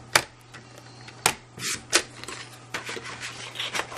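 A paper trimmer blade slides along and slices through card.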